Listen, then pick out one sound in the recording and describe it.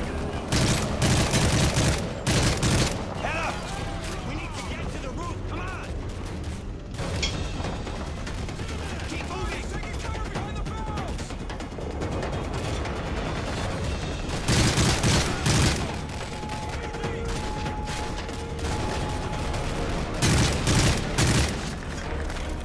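Gunfire rattles in loud, short bursts.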